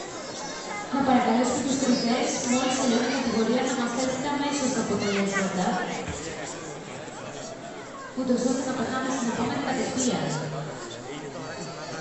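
Adults talk loudly close by.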